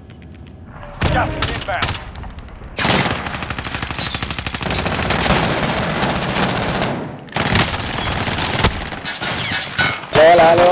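Rapid gunshots crack out in bursts.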